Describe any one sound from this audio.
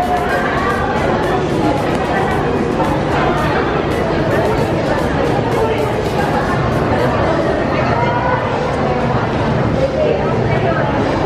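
A large crowd chatters loudly in an echoing indoor hall.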